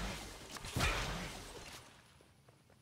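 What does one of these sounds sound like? A loud magical burst crackles and fades.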